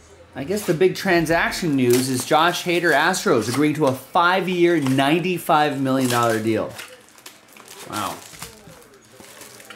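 Cardboard box flaps rustle and scrape.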